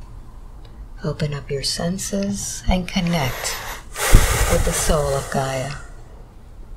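An elderly man speaks slowly and quietly, as if drowsy.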